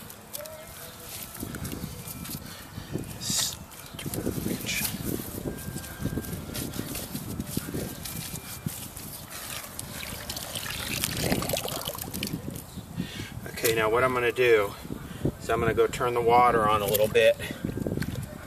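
Wet mud squelches and water sloshes as hands work in it.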